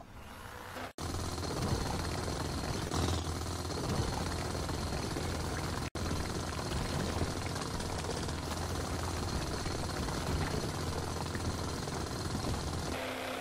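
A hand drill grinds steadily into rock with a low rumble.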